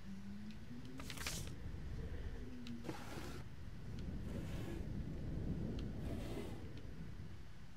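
A wooden drawer scrapes as it slides open.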